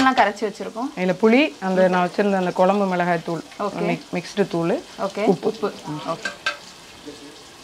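A woman talks calmly and steadily, close by.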